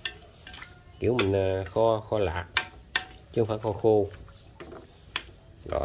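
Chopsticks tap and scrape against a metal pan.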